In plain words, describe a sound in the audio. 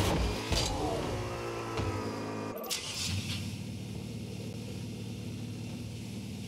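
A video game car engine hums steadily.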